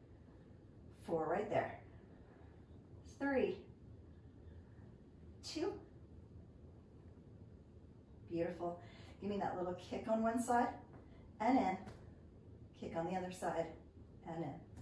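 A woman speaks calmly and clearly, as if giving instructions, close by.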